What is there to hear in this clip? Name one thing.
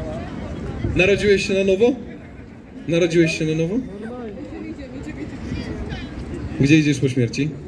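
A man speaks loudly into a microphone outdoors.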